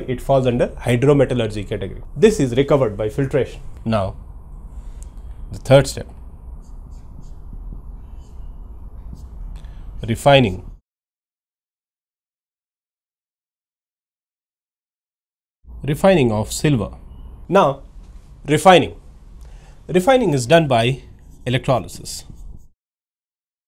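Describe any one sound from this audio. A man speaks calmly through a microphone, explaining.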